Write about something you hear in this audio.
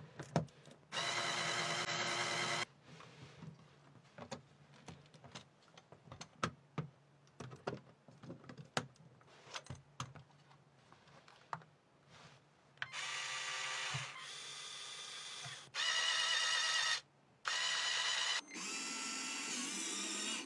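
Small electric motors whir with a high, steady whine, starting and stopping several times.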